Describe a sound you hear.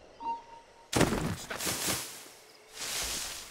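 Leaves rustle loudly as someone pushes through a bush.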